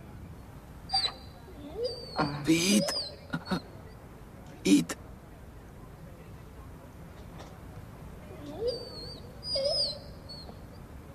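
A dog whines softly.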